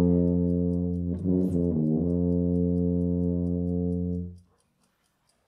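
A tuba plays a low, steady sustained note close by.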